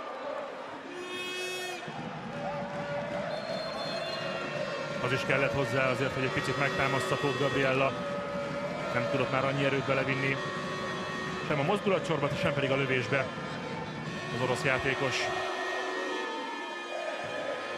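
A large crowd chants and drums in an echoing arena.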